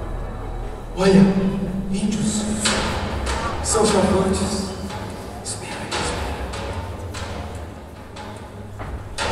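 A man speaks loudly on a stage in an echoing hall.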